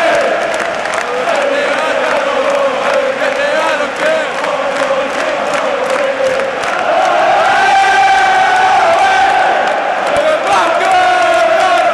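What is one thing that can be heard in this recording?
A large crowd sings loudly together in a huge open stadium.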